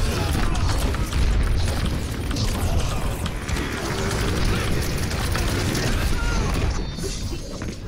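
A weapon's energy beam hums and crackles loudly.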